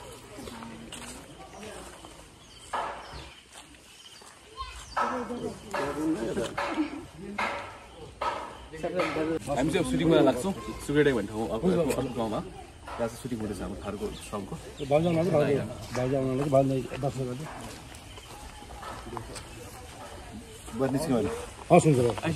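Men talk nearby outdoors, with several voices overlapping.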